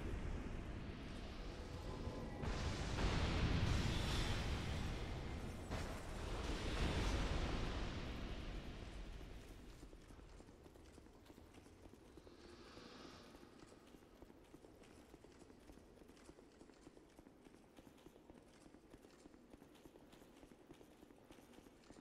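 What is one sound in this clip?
Armored footsteps clank on stone as a figure runs.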